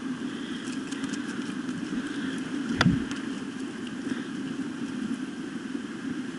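A shallow stream burbles steadily over rocks.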